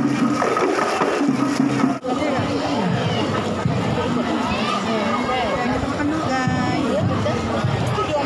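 A crowd of people chatters outdoors in the background.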